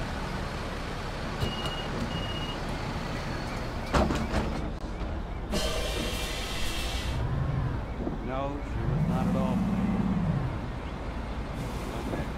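A bus engine rumbles steadily.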